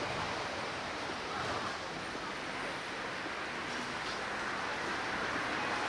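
A scooter rides past nearby.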